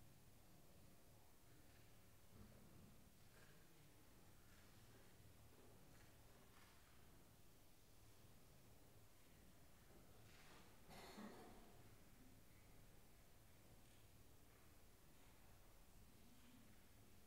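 Men and women chat quietly at a distance in a large echoing hall.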